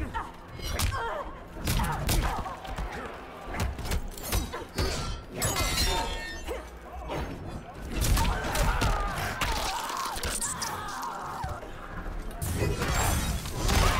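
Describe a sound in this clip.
A sword slashes through the air with a sharp whoosh.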